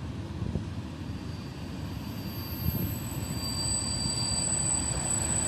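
An electric locomotive approaches, hauling passenger coaches.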